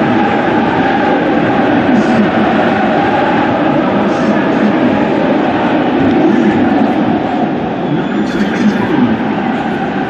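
A large stadium crowd cheers and chants.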